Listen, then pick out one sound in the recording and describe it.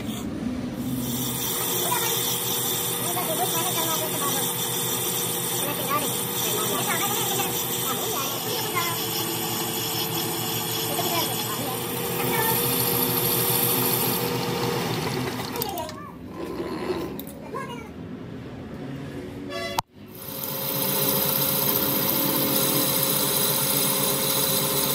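A cutting tool scrapes and squeals against spinning metal.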